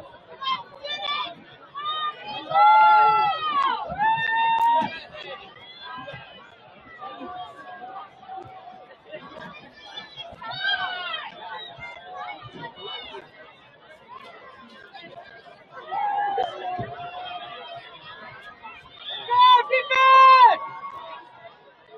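Young men on a sideline shout and cheer outdoors.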